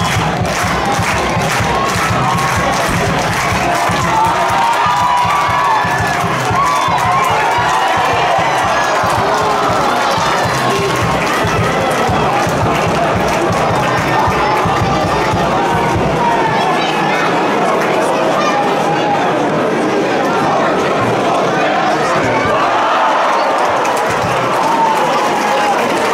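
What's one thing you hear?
A crowd murmurs and cheers in the open air.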